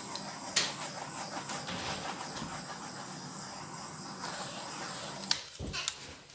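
A small torch hisses steadily.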